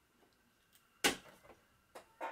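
A plastic cube is set down on a wooden table with a knock.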